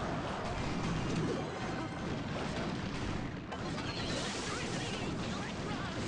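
Small game troops clash with quick hits and zaps.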